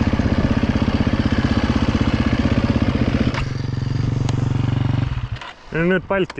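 A dirt bike engine idles loudly close by, then cuts off.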